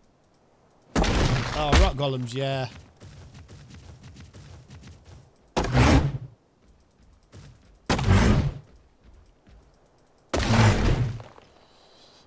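A small creature strikes a rock with heavy thudding blows.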